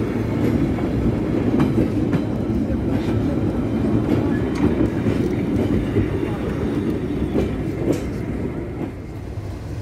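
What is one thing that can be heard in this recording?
A train rumbles along, its wheels clacking over the rail joints.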